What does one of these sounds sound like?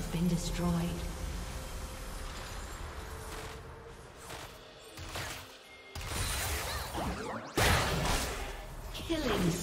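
Fantasy game spell effects whoosh and crackle in bursts.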